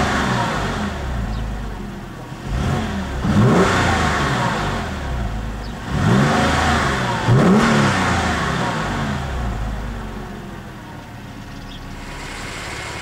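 A sports car engine idles and revs sharply, heard from inside the car.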